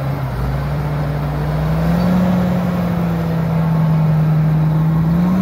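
A large tractor engine rumbles steadily and rises slightly in pitch as the tractor drives slowly past.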